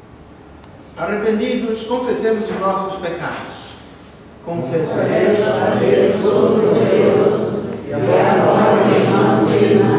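A man sings in a slow, sustained voice.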